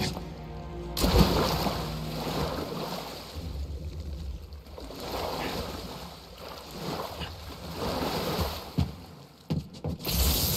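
Water splashes as a person wades and swims through it.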